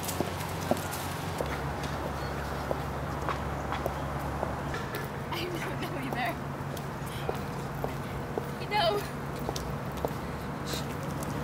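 Footsteps tap on a path.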